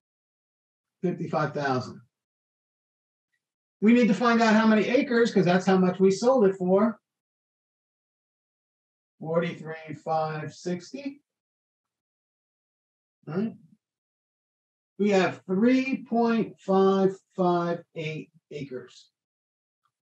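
An older man talks calmly into a close microphone, in short bursts with pauses.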